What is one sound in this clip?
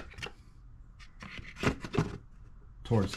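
A plastic part clicks and scrapes against metal.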